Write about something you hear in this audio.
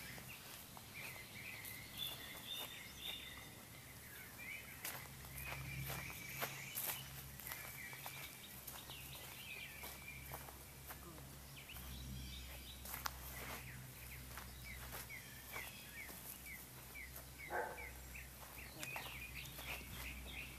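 Footsteps shuffle over grass and dry ground close by.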